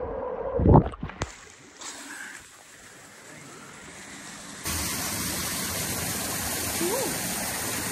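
A man splashes through water in a pool.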